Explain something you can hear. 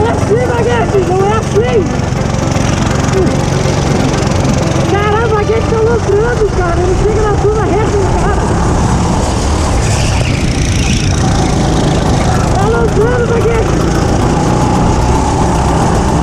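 A go-kart engine buzzes at speed, its revs rising and falling through the corners.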